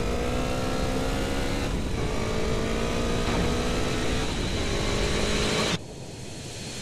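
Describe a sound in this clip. A motorcycle engine revs and hums steadily.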